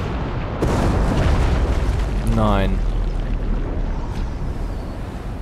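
A small submarine's motor hums low and muffled underwater.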